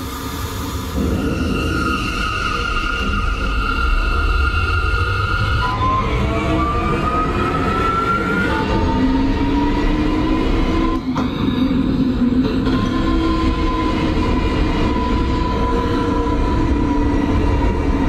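A subway train's motors whine, rising in pitch as the train speeds up.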